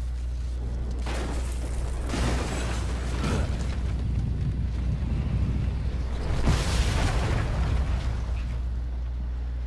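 Heavy debris crashes and rumbles as a structure collapses.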